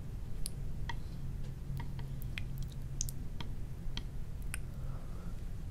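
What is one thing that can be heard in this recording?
Chopsticks click lightly against a plate.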